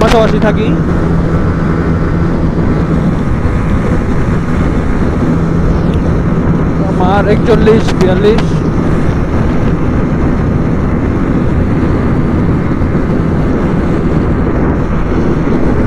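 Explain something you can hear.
A second motorcycle engine drones alongside.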